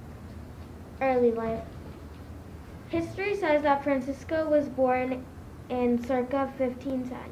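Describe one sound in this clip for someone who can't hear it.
A young girl reads out slowly and clearly through a microphone.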